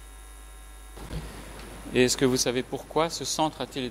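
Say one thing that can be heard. A man speaks steadily into a microphone.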